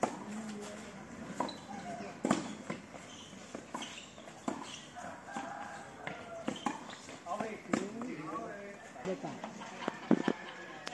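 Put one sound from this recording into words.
Tennis rackets hit a ball back and forth outdoors.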